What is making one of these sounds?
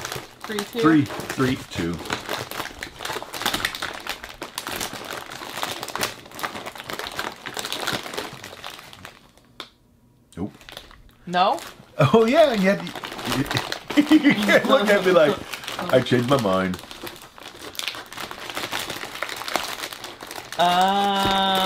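Cardboard rustles and scrapes as a box is searched.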